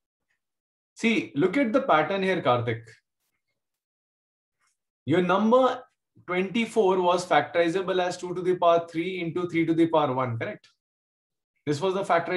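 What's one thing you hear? A man explains calmly through a microphone, as on an online call.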